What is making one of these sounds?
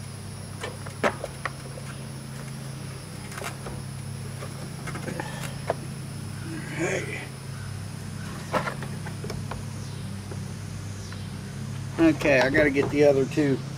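A plastic engine cover clicks and knocks as it is unfastened and lifted off.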